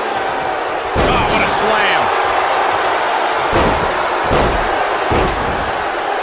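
A body slams down hard with a heavy thud.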